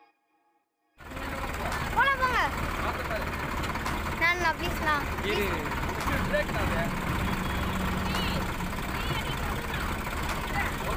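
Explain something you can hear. A tractor engine idles with a steady low rumble close by.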